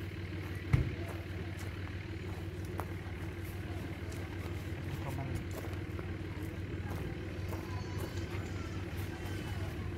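Footsteps crunch on wood chips.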